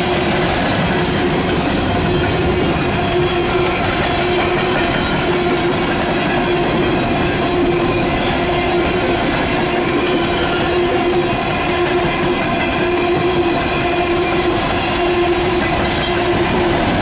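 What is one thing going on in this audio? Freight cars rumble loudly past on the rails.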